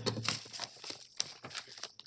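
Papers rustle in a woman's hand.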